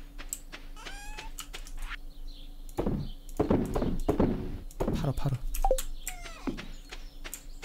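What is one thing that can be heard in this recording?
A game menu pops open and closed with soft clicks.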